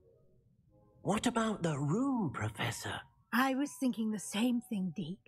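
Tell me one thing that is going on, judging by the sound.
A woman speaks calmly and warmly, close by.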